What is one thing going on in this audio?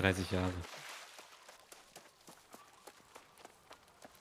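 Footsteps patter quickly over grass and wooden planks.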